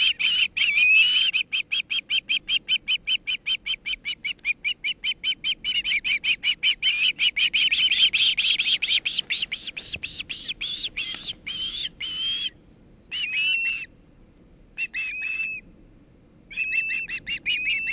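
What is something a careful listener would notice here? A bird of prey calls in rapid, shrill, repeated cries close by.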